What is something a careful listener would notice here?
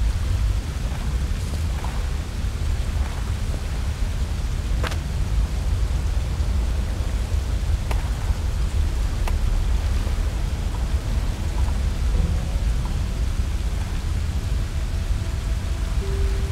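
Water laps gently nearby.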